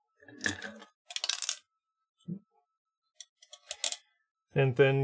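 Plastic parts rustle and click.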